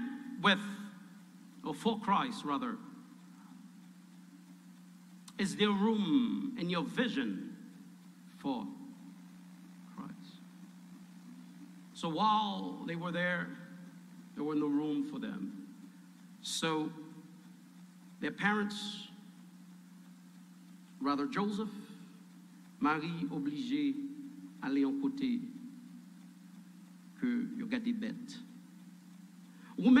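A man speaks into a microphone in measured bursts with pauses.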